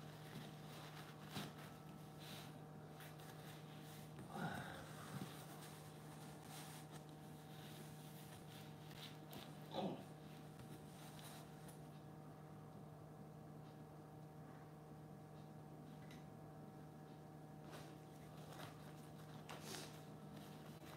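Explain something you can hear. Paper rustles and crinkles as hands handle cut-out pieces.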